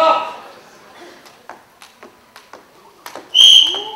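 A skipping rope slaps rhythmically on a wooden floor.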